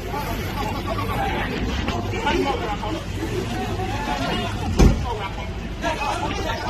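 Several men shout excitedly nearby, outdoors.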